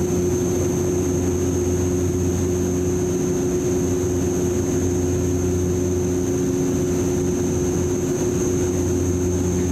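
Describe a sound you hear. A propeller engine drones steadily and loudly close by.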